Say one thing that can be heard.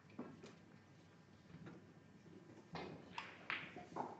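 A cue strikes a snooker ball.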